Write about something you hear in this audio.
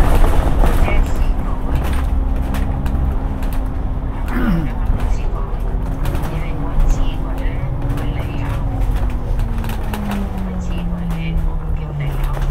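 A bus engine hums and whines steadily as the bus drives along and turns.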